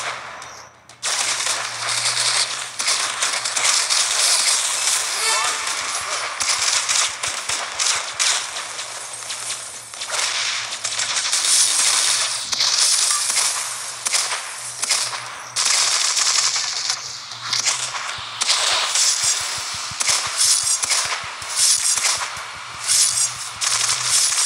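Shots and explosions from a video game fire rapidly.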